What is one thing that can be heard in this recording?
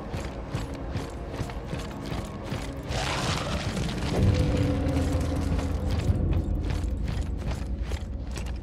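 Heavy boots thud on a hard floor at a steady running pace.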